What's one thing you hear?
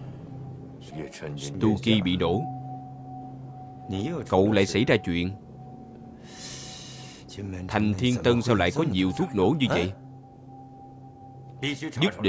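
A middle-aged man speaks in a low, stern voice nearby.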